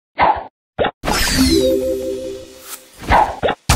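A cheerful chime jingles as a cluster of bubbles drops.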